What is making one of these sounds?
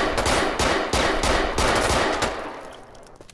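A pistol fires a rapid burst of shots.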